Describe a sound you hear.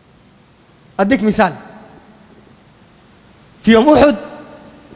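A man speaks calmly into a microphone in short phrases, with a slight echo.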